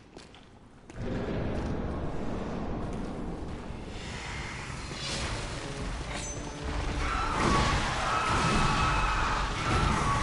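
A sword clangs and slashes in a fight.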